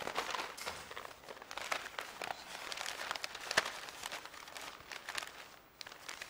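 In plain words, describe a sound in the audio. Newspaper pages rustle.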